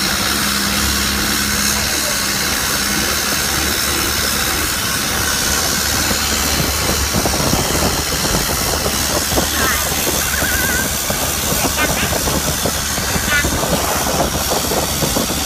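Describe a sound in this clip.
A boat engine hums steadily close by.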